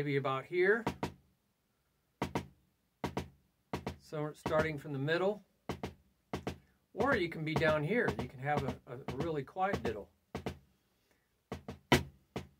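Drumsticks tap sharply on a drum.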